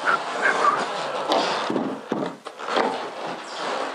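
A large board scrapes and knocks as it is handled.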